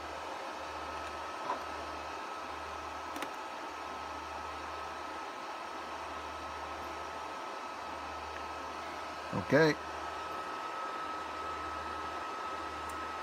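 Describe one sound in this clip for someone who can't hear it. An electronic instrument gives off a steady, faint high whine.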